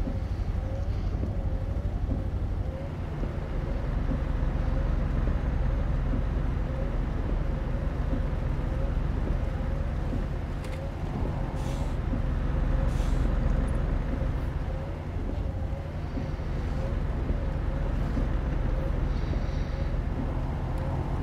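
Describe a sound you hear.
A truck engine rumbles steadily at a low pitch.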